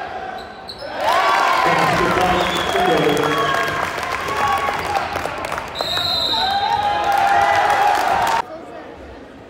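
Spectators nearby shout and cheer loudly.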